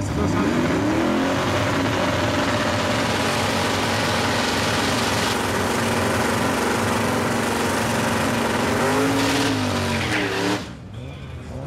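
Tyres squeal and screech as they spin on pavement.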